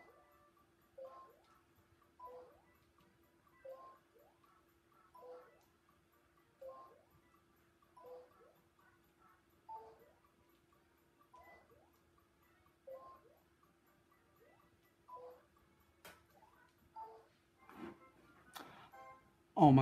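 A game character jumps with short springy chimes, again and again.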